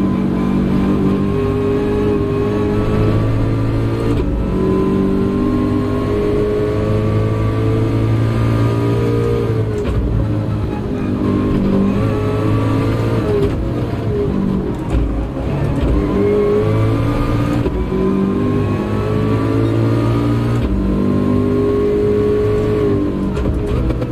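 A racing car engine revs high and shifts through gears, rising and dropping in pitch.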